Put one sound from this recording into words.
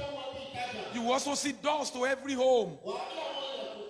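A man shouts loudly into a microphone.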